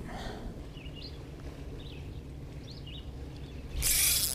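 A fishing reel whirs softly as it is cranked.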